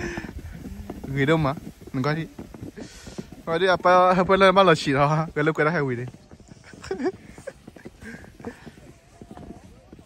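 A plastic sled scrapes over snow.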